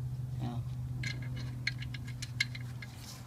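A wrench clicks and taps against metal.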